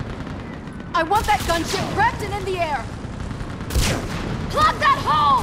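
A man shouts orders urgently.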